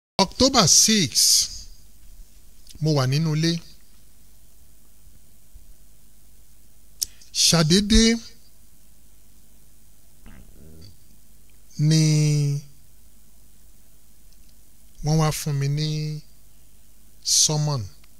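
A man speaks slowly into a microphone in short bursts with pauses.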